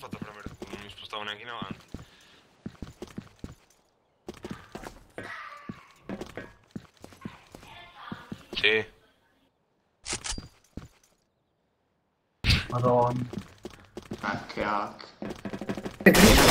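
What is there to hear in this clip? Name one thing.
Footsteps run across a metal floor.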